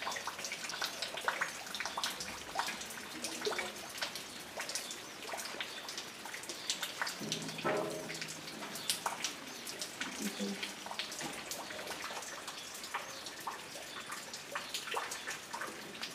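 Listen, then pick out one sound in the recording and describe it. A small bird chirps nearby.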